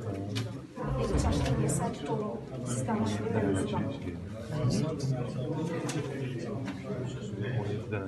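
Paper rustles as ballots are handled.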